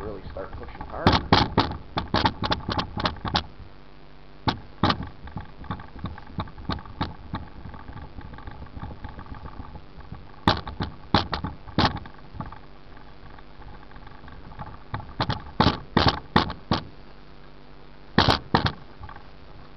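The microphone knocks and bumps as a hand brushes past it.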